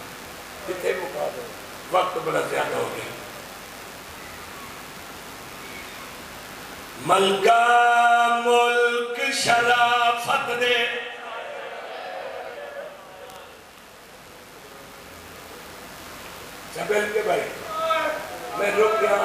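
A man speaks passionately into a microphone, his voice carried over loudspeakers in an echoing space.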